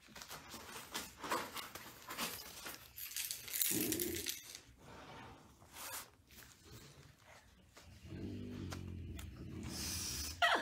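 Newspaper rustles and crinkles as a puppy steps on it.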